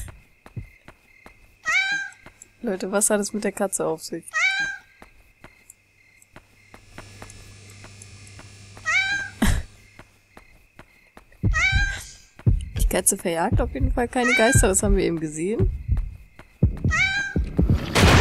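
Light footsteps tap along a hard path.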